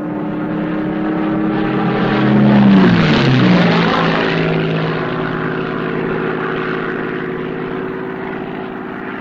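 A propeller plane engine drones overhead, roaring loudest as it passes and then dropping in pitch as it flies away.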